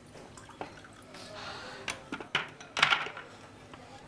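Ice cubes clink in a bucket.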